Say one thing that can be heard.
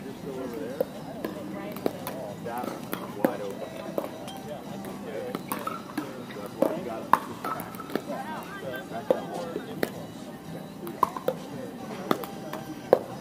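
Pickleball paddles sharply pop against a ball on nearby courts.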